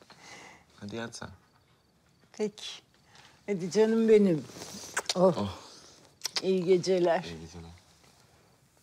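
An elderly woman speaks warmly and with feeling close by.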